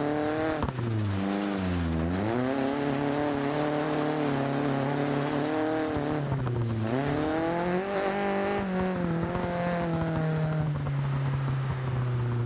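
Tyres skid and scrape on gravel.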